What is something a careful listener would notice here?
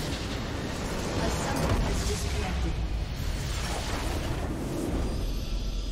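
A crystal structure explodes with a loud blast.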